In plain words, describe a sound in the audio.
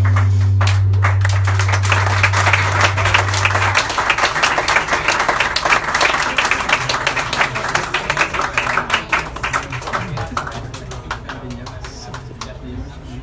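A live band plays loudly.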